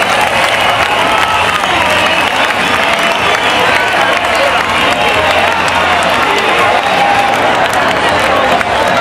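A large crowd cheers and sings along loudly outdoors.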